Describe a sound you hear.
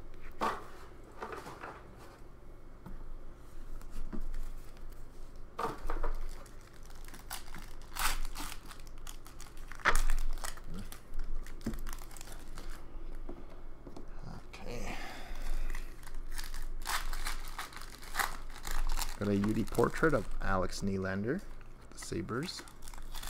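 Cardboard cards rustle and slap as they are shuffled and handled.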